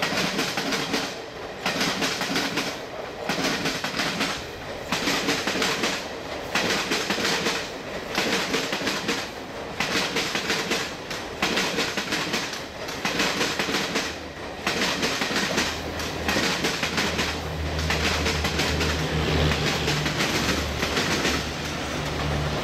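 Passenger coach wheels clatter rhythmically over rail joints as a train passes.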